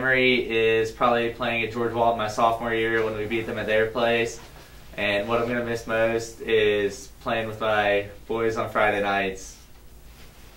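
A young man speaks calmly and clearly into a microphone.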